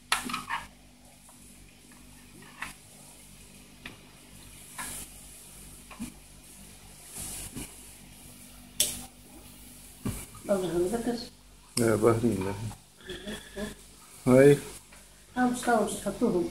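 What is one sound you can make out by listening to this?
A knife cuts through raw meat on a plastic cutting board.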